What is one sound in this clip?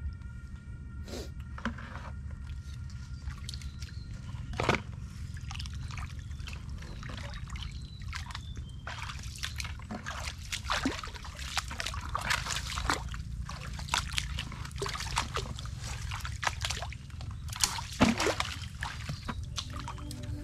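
Footsteps squelch and splash through shallow water and mud.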